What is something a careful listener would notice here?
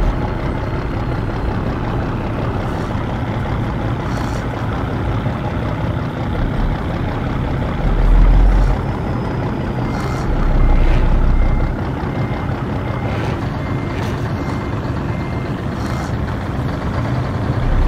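A heavy truck engine rumbles steadily at low speed, with deeper surges now and then.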